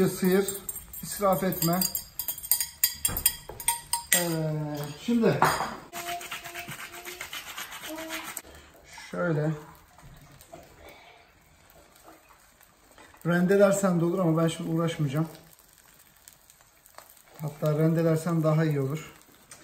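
Eggs sizzle softly in a hot frying pan.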